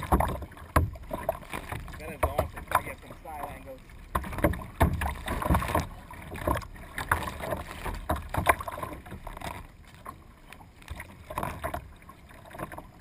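A paddle splashes and dips into water in a steady rhythm.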